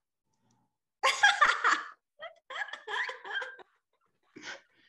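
A woman laughs loudly through an online call.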